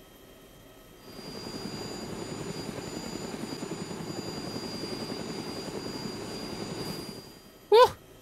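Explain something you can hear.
A helicopter rotor whirs steadily as the helicopter hovers low and lands.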